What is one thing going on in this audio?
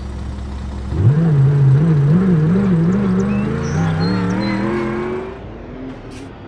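A car engine revs and whines as the car speeds along.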